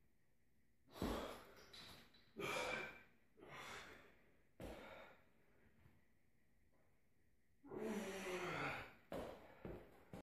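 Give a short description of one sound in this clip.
A man breathes hard and grunts with each pull-up.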